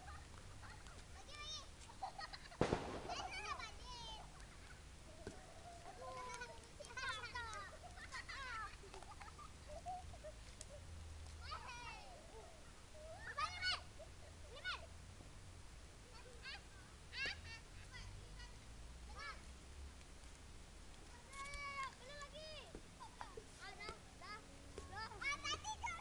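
Young children shout and chatter excitedly outdoors.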